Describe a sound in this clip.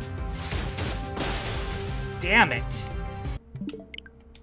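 Video game music and battle effects play loudly.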